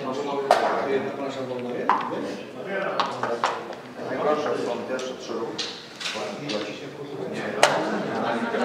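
Game pieces click as they are slid and set down on a board.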